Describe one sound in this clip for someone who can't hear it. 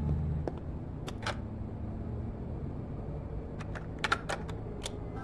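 A button clicks on a cassette player.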